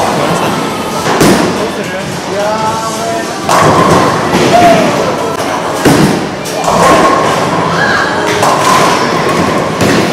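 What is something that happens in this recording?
A bowling ball rolls down a lane.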